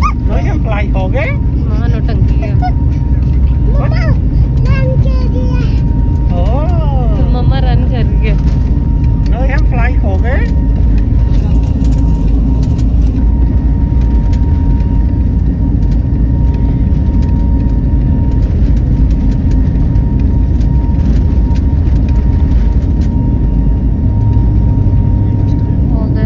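Aircraft engines roar steadily in a cabin.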